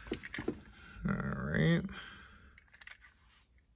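Plastic wire connectors click and rattle in a hand.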